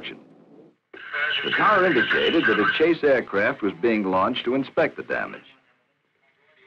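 A man speaks calmly into a radio handset.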